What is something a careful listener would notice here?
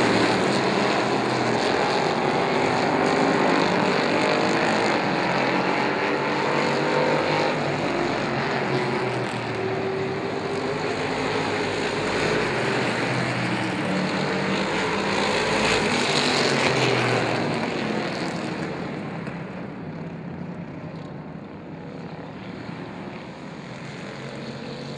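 Race car engines roar loudly as cars speed around the track.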